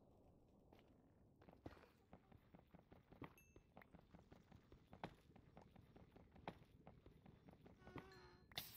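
A pickaxe chips at stone in quick, soft knocks.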